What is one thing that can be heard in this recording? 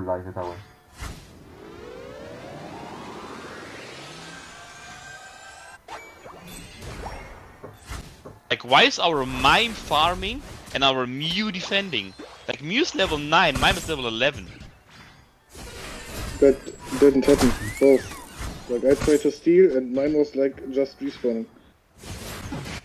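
Video game effects whoosh and chime.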